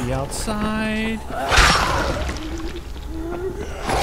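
A zombie snarls and groans close by.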